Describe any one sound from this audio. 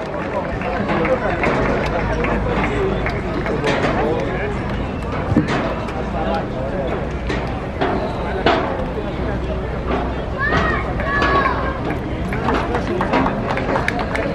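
A crowd of people chatters and cheers nearby, outdoors.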